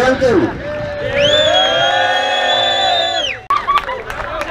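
A group of young men cheers and sings loudly.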